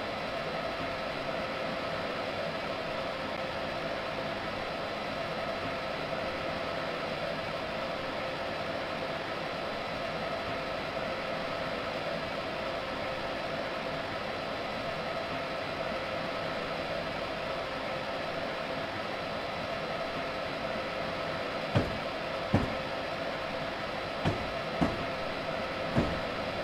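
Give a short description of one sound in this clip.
A train rumbles steadily along the tracks with a droning hum.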